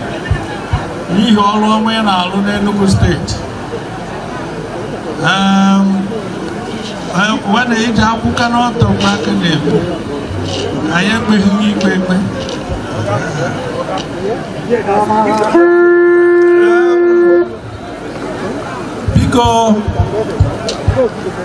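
A man sings loudly through a loudspeaker outdoors.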